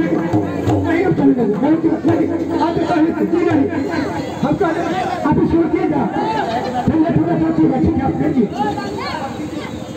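A hand drum is beaten in a quick rhythm.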